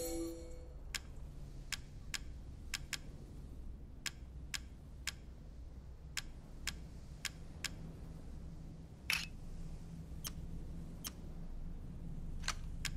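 Short, sharp menu clicks sound one after another.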